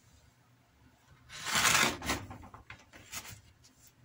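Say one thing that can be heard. A utility knife slices through paper.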